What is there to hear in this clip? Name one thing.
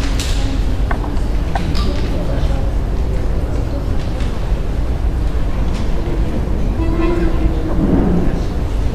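An accordion plays in a room with a slight echo.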